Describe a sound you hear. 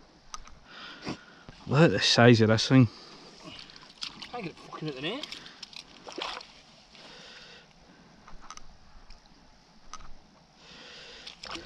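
Water splashes as a net is lifted from a pond.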